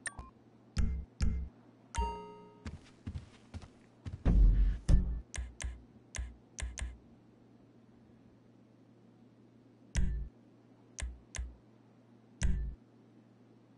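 Short game menu clicks and beeps sound as options are selected.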